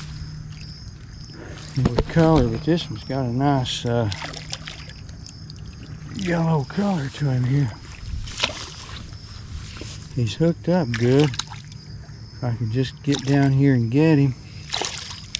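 A fish splashes and thrashes in shallow water close by.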